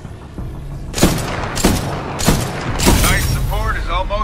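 Sniper rifle shots crack loudly with heavy echoing booms.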